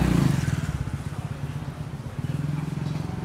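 A motorbike engine hums past on a street.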